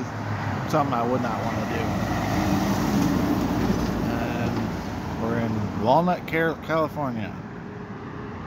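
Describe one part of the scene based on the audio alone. A heavy truck rolls past close by on the road.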